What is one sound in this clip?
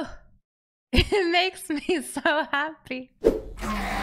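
A young woman laughs into a close microphone.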